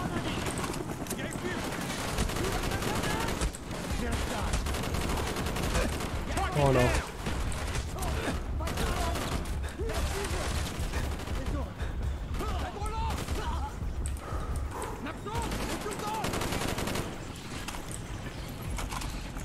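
A rifle fires shot after shot with sharp, loud cracks.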